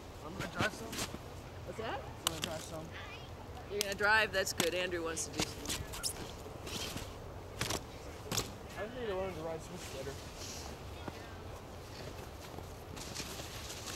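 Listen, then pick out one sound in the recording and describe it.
A snowboard scrapes and thumps on packed snow close by.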